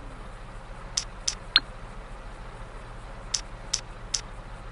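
A phone menu clicks with short electronic beeps.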